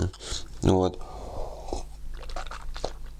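A man sips a drink from a mug.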